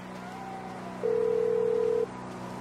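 A phone gives a short steady dialing tone.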